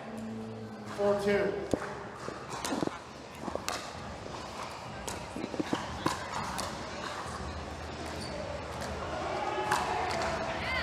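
Paddles pop sharply against a ball in a quick rally.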